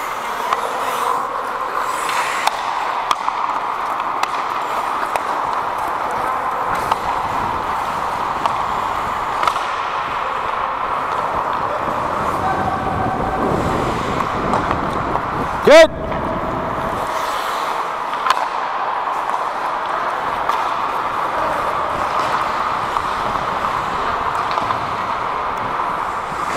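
Ice skates scrape and hiss across the ice in a large echoing rink.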